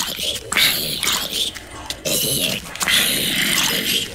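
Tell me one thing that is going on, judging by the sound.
A sword strikes a zombie with dull thuds.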